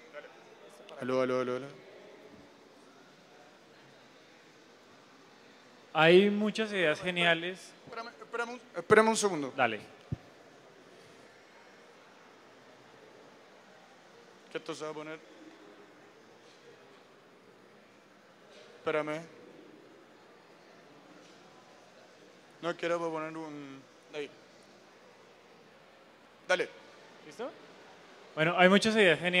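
A young man speaks into a microphone over loudspeakers in a large hall, in short bursts with pauses.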